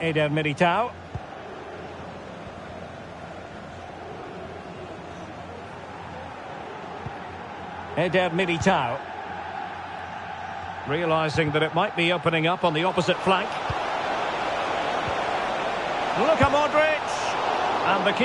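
A stadium crowd roars steadily, swelling louder toward the end.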